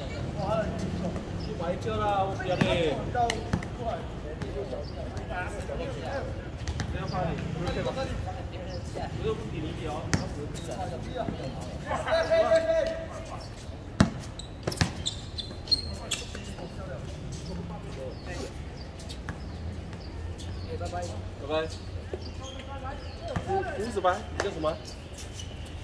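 Young men call out to each other during a game.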